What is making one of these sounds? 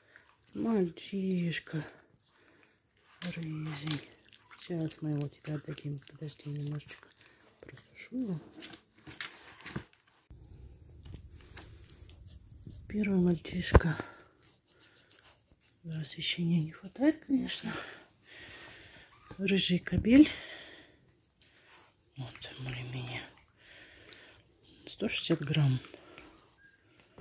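A newborn puppy squeals and whimpers.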